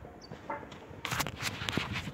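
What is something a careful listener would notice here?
Shoes scuff and bump loudly right beside the phone.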